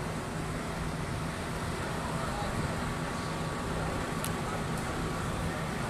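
Fire engines idle with a steady low rumble outdoors.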